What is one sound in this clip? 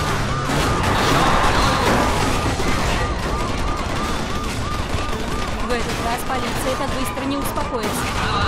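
A police siren wails rapidly up and down.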